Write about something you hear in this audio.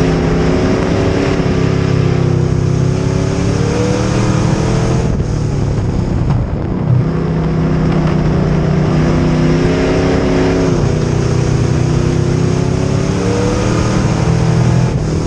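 A race car engine roars loudly up close, revving up and easing off through the turns.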